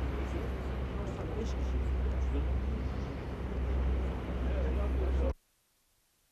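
A helicopter's rotor thuds in the distance.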